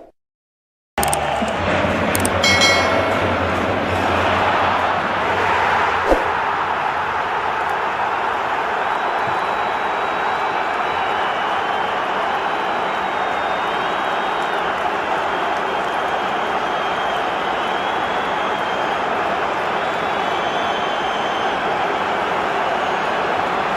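A huge stadium crowd roars and cheers loudly.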